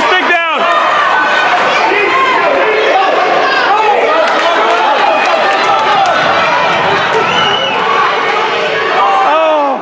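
A crowd of spectators cheers and chatters loudly in a large echoing rink.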